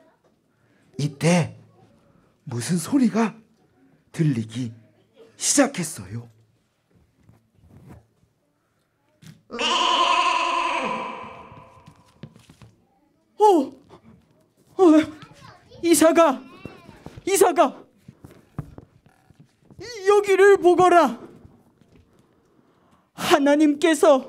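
A woman speaks theatrically through a microphone in short bursts.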